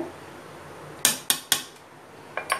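A metal spoon taps against a ceramic bowl.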